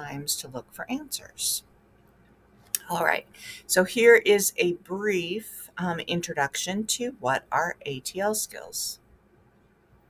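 A woman speaks calmly through a microphone, close by.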